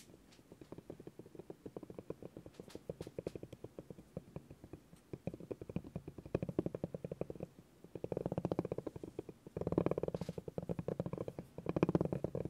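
A spiky rubber ball rolls over a wooden board with rapid little ticks.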